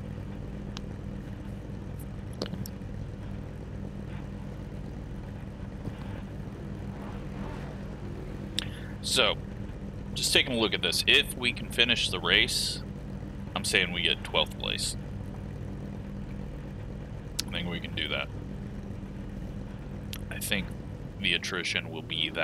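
Car engines idle with a low, steady rumble.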